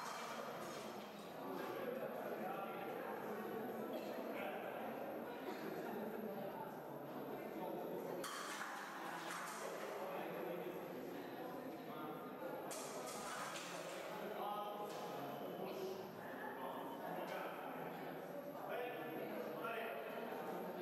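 Fencing blades clash and clatter.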